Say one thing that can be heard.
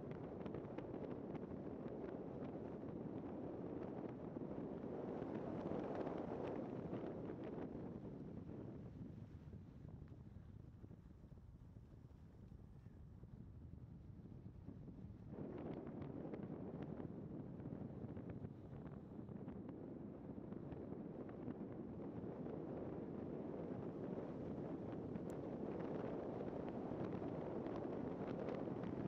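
Tyres crunch and rumble over a gravel track.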